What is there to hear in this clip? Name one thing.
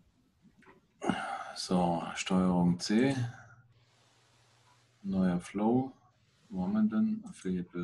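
An older man speaks calmly over an online call.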